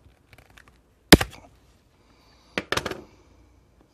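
A plastic casing snaps with a sharp click.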